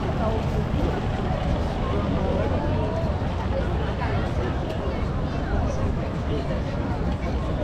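A busy crowd of people chatter nearby outdoors.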